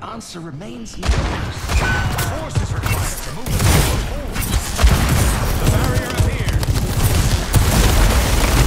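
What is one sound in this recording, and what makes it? Rapid gunfire and energy blasts crackle.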